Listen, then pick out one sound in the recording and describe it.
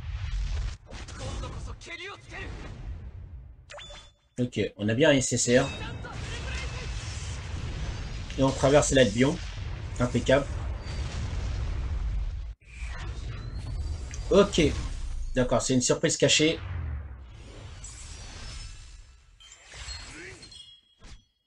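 Game sound effects whoosh and boom with a deep rumble.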